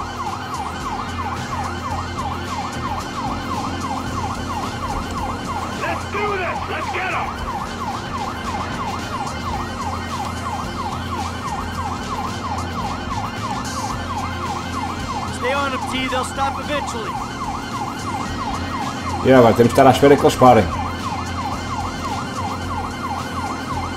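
A police siren wails with a fast, repeating rise and fall.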